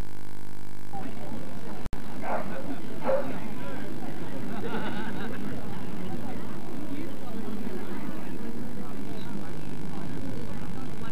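A crowd of spectators murmurs in the distance.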